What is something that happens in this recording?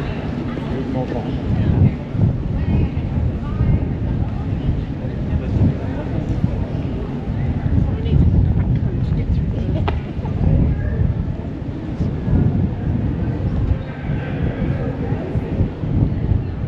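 Adults chat and murmur in passing outdoors.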